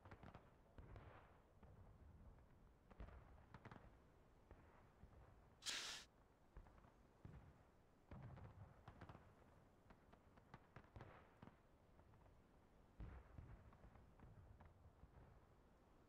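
Wind gusts rustle through trees outdoors.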